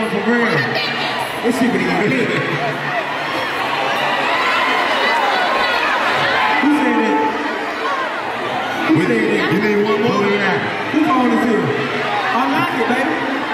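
A large crowd cheers and screams throughout.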